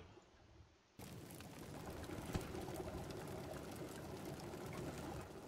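A campfire crackles softly.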